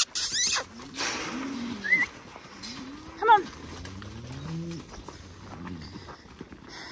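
Cattle moo low and drawn out nearby.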